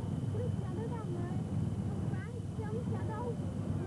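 Car engines hum as cars drive along a track below.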